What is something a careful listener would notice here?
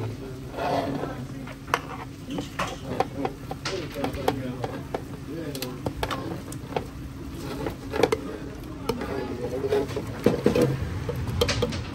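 Raw shrimp slide and tumble into a pot with wet thuds.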